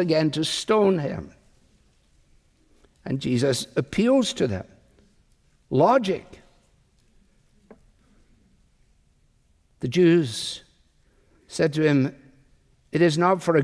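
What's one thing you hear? A middle-aged man speaks slowly and deliberately through a microphone, with pauses between phrases.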